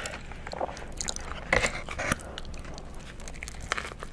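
A burger bun crunches and squishes as a young woman bites into it.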